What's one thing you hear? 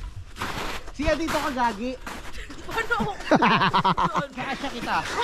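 A young woman shouts.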